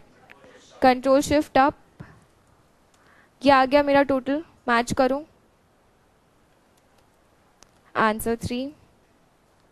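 A young woman speaks calmly into a close microphone in short phrases.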